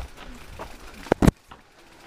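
Leaves and branches brush against a passing rider.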